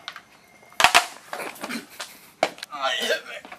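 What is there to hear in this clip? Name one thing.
A skateboard clatters across the floor.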